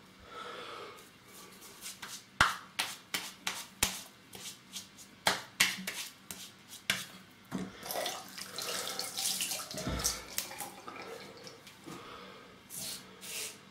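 A razor scrapes over stubble with short, quick strokes.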